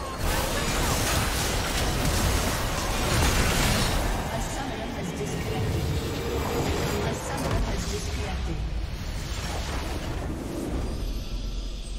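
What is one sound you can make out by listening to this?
Spells and attacks crash and whoosh in a fast battle.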